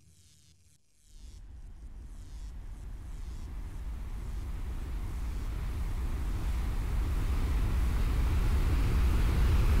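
A deep magical rumble swells steadily louder.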